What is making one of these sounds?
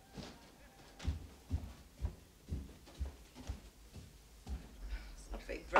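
Footsteps thump steadily along a floor.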